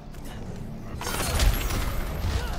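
Icy blasts crackle and shatter.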